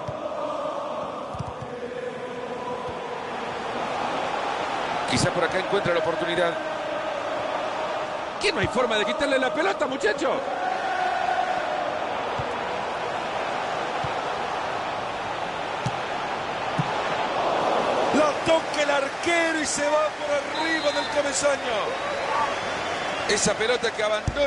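A large stadium crowd roars steadily, swelling at times.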